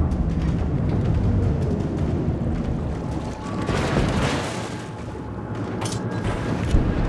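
Waves splash and churn around a surfacing submarine.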